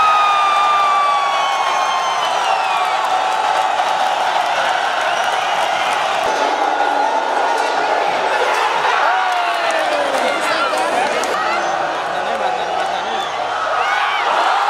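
Spectators in a stadium whistle shrilly.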